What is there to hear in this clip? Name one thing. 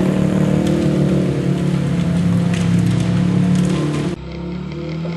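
An off-road truck engine roars loudly nearby.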